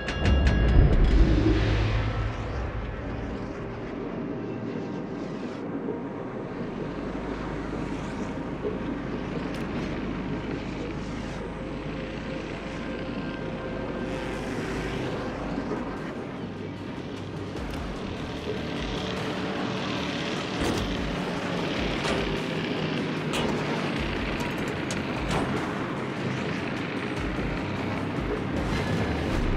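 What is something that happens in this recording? A ship's engine rumbles low and steady.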